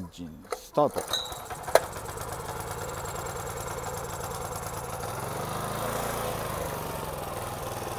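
A small petrol engine starts and runs with a steady rattling putter.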